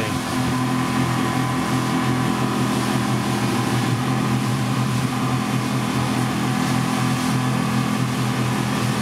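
A boat's wake churns and splashes loudly.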